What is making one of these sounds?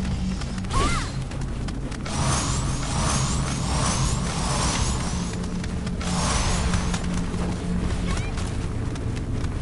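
Fire roars and crackles steadily.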